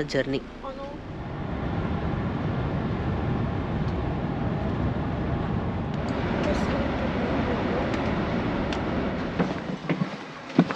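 Tyres roar steadily on a highway as a coach drives along.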